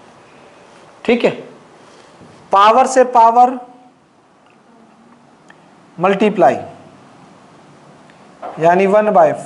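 A man speaks in short bursts, explaining clearly.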